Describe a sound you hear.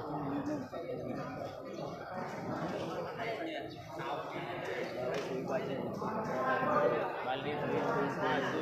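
A crowd of men and women chatters and calls out in a large echoing hall.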